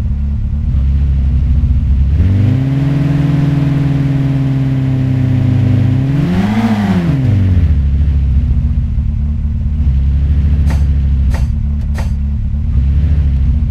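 A car engine hums steadily, revs higher, then drops back to idle.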